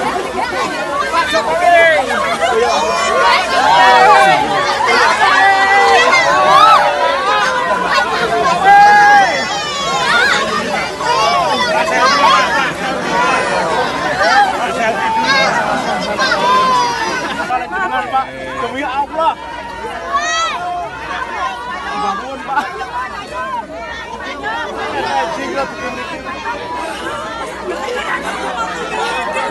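A large crowd outdoors chatters and shouts excitedly close by.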